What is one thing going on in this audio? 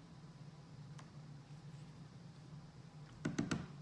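A paintbrush taps and clicks against a plastic paint box.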